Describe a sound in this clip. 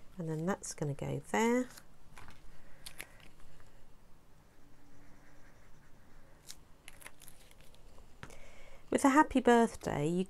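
Paper rustles as hands handle it.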